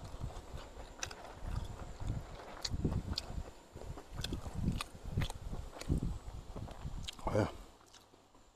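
A middle-aged man chews food with his mouth closed, close to the microphone.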